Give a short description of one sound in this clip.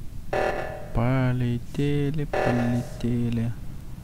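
An alarm blares in short, repeated bursts.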